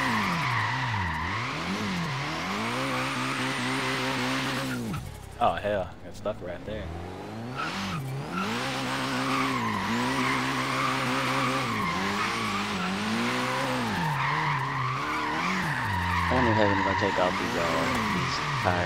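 Tyres screech in long squeals.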